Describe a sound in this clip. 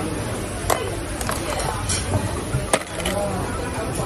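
Oyster shells clatter as a hand picks one up.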